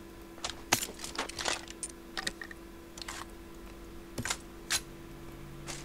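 Short game clicks and clatters sound as items are picked up.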